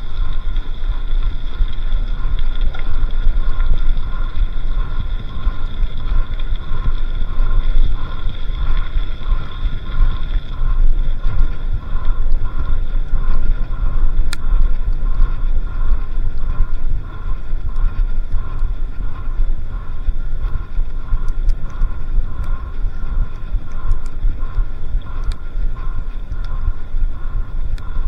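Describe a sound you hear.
Bicycle tyres crunch and rumble over a gravel track.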